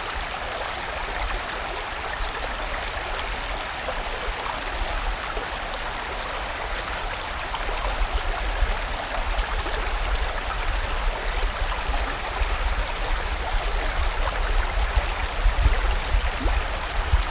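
A stream rushes and splashes steadily over rocks.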